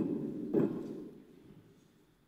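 An elderly woman speaks calmly into a microphone in a large echoing hall.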